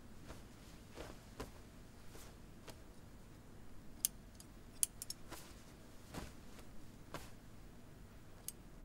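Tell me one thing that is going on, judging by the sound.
Fabric rustles and crinkles as hands handle it.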